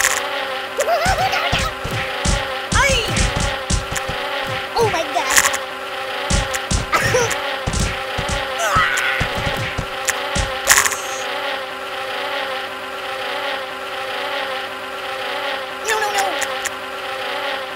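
Cartoon thuds and clanks ring out rapidly.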